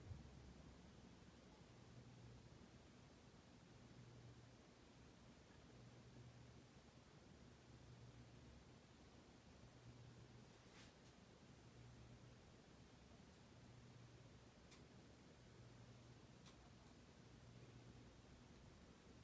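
A ceiling fan motor hums steadily with a soft pulsing whoosh.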